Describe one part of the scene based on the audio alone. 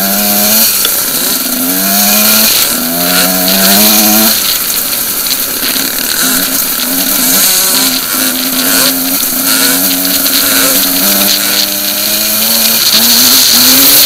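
A motorcycle engine revs up and down, shifting gears as it rides over rough ground.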